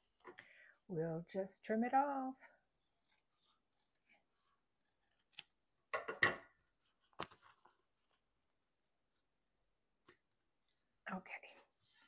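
Foil wrapping paper crinkles softly as it is handled and folded.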